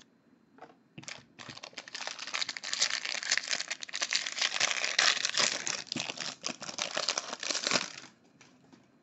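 A foil card wrapper crinkles and tears as hands open it up close.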